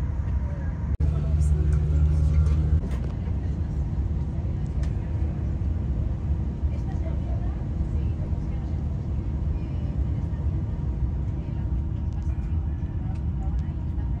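A low steady engine hum drones inside an aircraft cabin.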